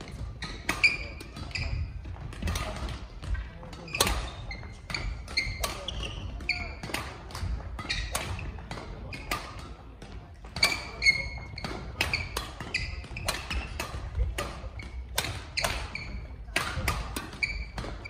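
Shuttlecocks are struck with rackets in rapid sharp smacks, echoing in a large hall.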